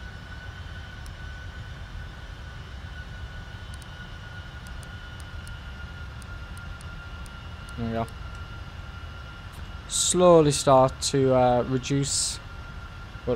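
A steady low engine drone hums throughout.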